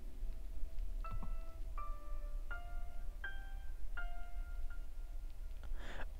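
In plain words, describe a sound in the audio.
Piano notes ring out slowly, one after another.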